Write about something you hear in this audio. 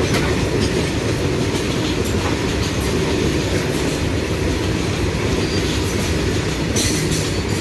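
A freight train rumbles past close by, its wheels clattering over the rail joints.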